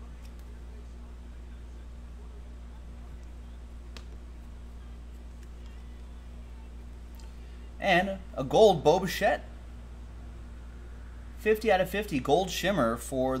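Trading cards rustle and slide in a man's hands.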